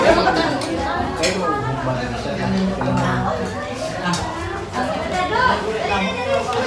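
Several men and women chat at once nearby.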